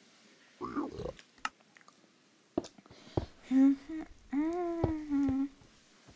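Game blocks thud softly as they are placed.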